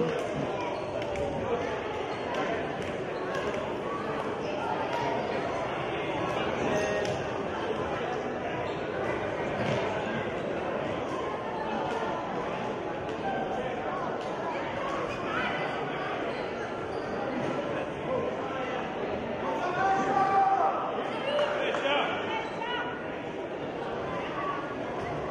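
Children chatter and call out in an echoing indoor hall.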